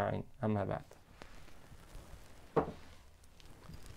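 A book is closed and set down with a soft thud.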